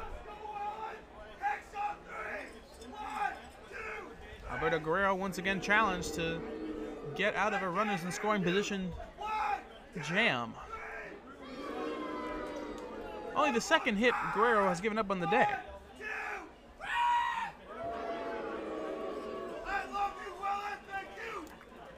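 A crowd murmurs in an open-air stadium.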